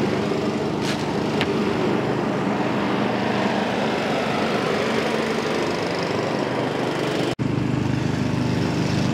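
A small petrol engine runs loudly and steadily close by.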